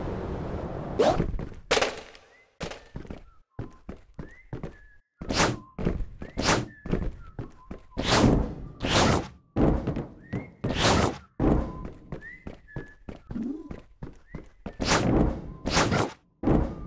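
Quick whooshes sweep by again and again.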